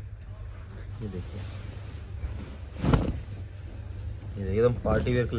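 Silk cloth rustles as it is unfolded and handled.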